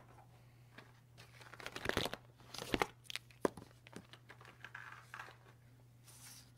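Plastic marker pens rattle and clatter in a case.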